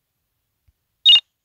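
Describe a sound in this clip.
A short bright game menu chime rings.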